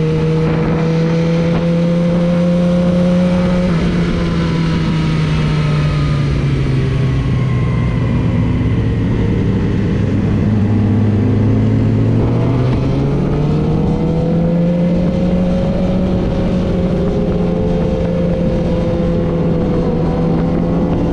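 A motorcycle engine roars up close, its pitch dropping and rising as the rider shifts and speeds up.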